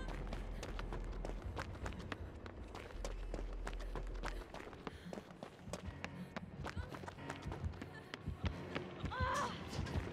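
Footsteps run quickly over a hard floor.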